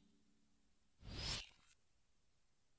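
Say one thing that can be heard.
A short rushing whoosh plays.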